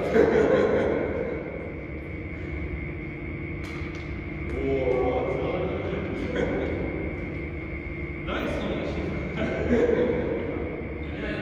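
A young man talks across the hall, distant and echoing.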